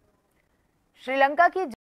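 A young woman speaks clearly into a microphone, like a news presenter.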